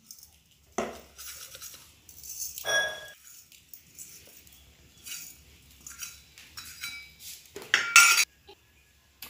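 A metal spoon taps against a bowl.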